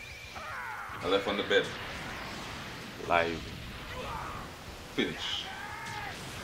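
A young man shouts excitedly close to a microphone.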